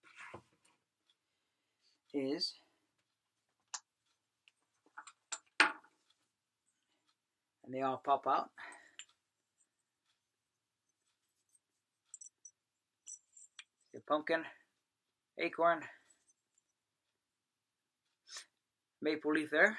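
An adult man talks calmly, close by, in short phrases.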